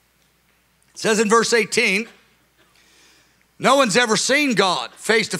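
A middle-aged man speaks with emphasis into a microphone.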